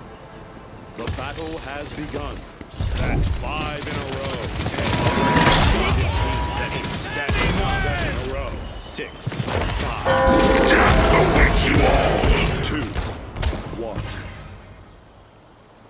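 Gunfire and energy blasts crack and whoosh in rapid bursts.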